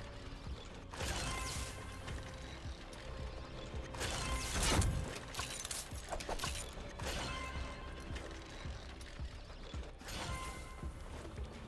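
Game traps go off with sharp whooshing bursts.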